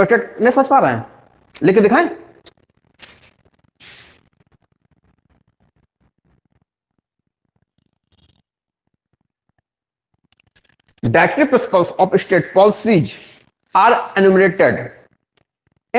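A man speaks calmly and clearly, lecturing close to a microphone.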